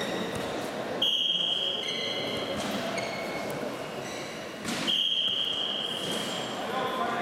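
A referee blows a short, sharp whistle twice.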